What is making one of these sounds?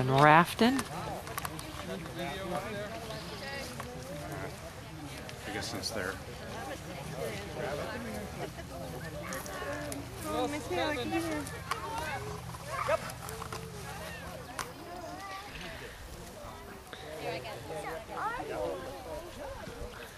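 Several men and women talk and call out nearby, outdoors.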